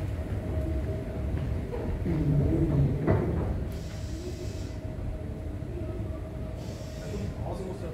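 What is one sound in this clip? A steady low murmur fills a large echoing hall.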